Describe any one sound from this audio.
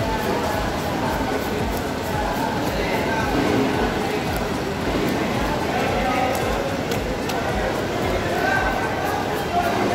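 A busy crowd chatters all around.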